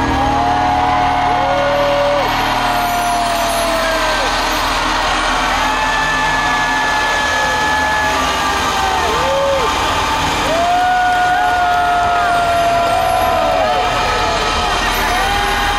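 Music plays loudly over speakers in a large, echoing arena.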